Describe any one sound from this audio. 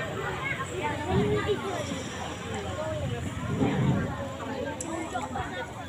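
A young girl speaks through a microphone over loudspeakers.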